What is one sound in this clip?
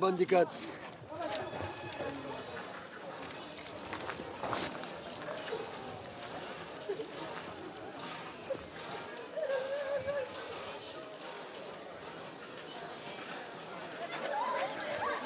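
Men talk quietly in the background outdoors.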